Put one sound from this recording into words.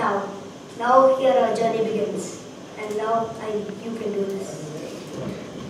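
A boy speaks loudly in a clear, performing voice.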